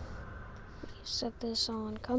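Short electronic tones chime.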